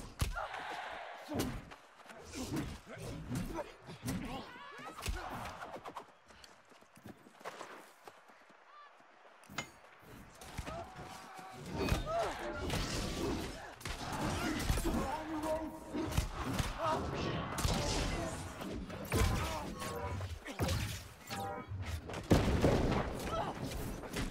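Weapons clash and strike in a game fight.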